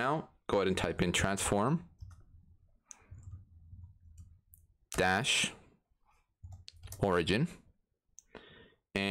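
A man talks calmly and closely into a microphone, in short bursts.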